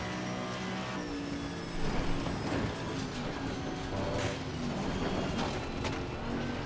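A racing car engine drops in pitch and crackles as the car brakes and shifts down.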